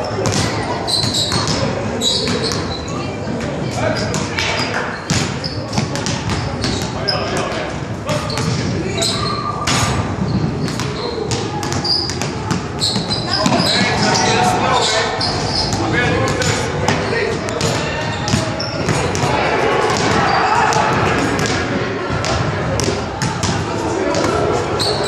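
A man speaks in a large echoing gym.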